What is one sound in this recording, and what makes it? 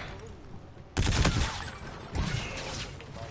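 A rifle fires loud rapid bursts.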